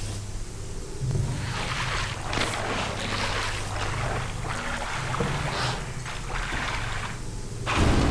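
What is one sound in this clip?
A gun fires repeatedly in quick bursts.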